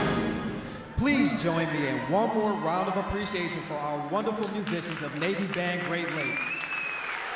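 A man speaks loudly through a loudspeaker in a large echoing hall.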